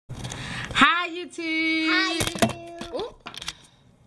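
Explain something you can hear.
A young girl sings out in a high voice close to the microphone.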